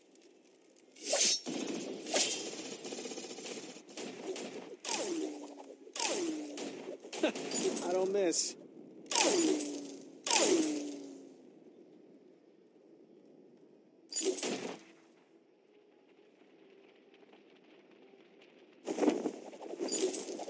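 Sharp whooshing blasts and impacts burst out in quick bursts.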